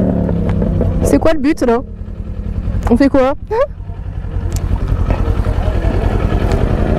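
A motorcycle engine idles with a low, steady rumble close by.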